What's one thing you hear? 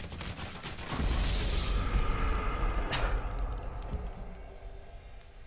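A loud blast booms and rumbles, then fades.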